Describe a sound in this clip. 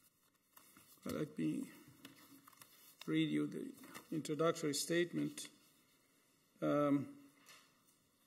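An elderly man speaks calmly into a microphone, in short phrases.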